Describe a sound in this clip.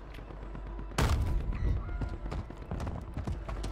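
Footsteps thud on grass.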